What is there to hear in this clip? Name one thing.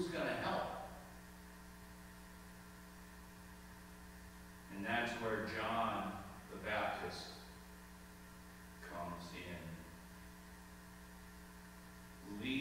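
A man speaks slowly through a microphone, with long pauses, in a large echoing hall.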